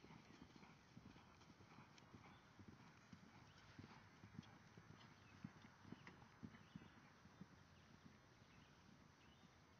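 A horse gallops over grass with dull, distant hoofbeats.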